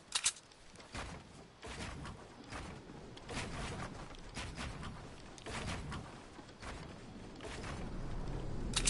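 Building pieces clatter rapidly into place in a game.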